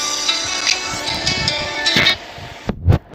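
A phone ringtone plays.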